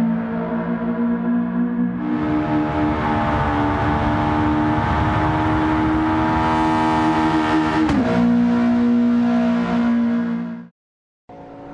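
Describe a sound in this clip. A car engine revs loudly and roars at high speed.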